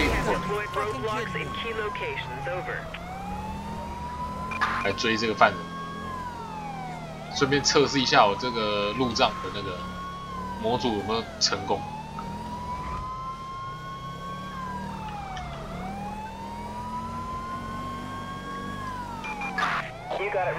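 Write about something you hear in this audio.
A police siren wails, rising and falling.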